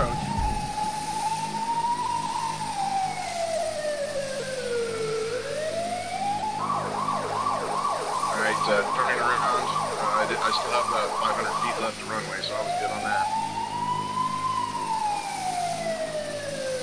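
Twin propeller engines hum, their pitch falling and rising.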